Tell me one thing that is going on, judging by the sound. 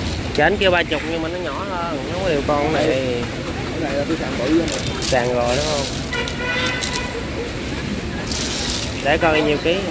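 Clam shells clatter and clink as a hand stirs through them.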